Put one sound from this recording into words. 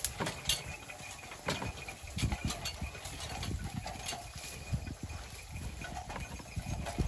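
Hooves clop on a dirt path.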